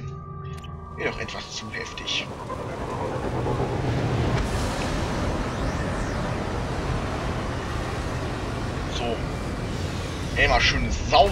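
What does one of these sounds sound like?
A spacecraft's engines roar as it flies past.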